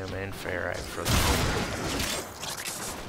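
Blades slash and strike with sharp impacts.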